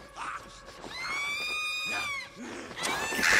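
Crows caw overhead.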